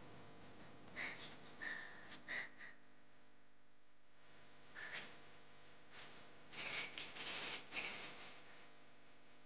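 Cloth rustles and crinkles softly in hands.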